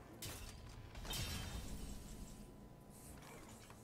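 A bright fanfare chimes.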